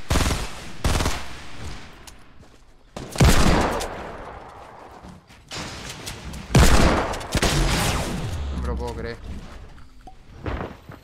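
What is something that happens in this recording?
Loud gunshots and crashes burst out in a video game.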